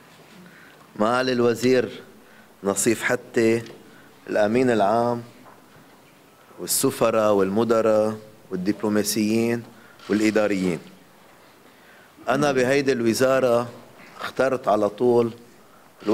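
A middle-aged man speaks firmly through microphones, pausing between phrases.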